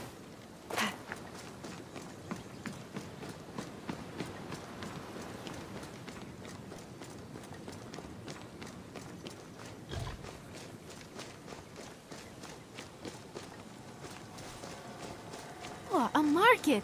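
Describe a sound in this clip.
Footsteps patter quickly over dirt and stone.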